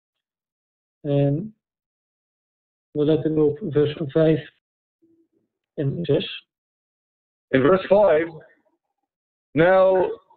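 A man speaks calmly and clearly into a microphone, in short phrases with pauses.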